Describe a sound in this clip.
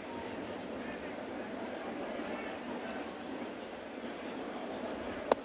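A large stadium crowd murmurs steadily outdoors.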